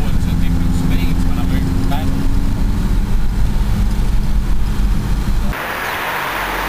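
A car engine drones steadily from inside a moving car.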